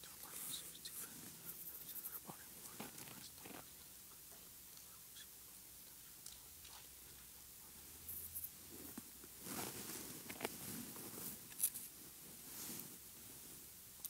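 A man speaks quietly in a low murmur nearby.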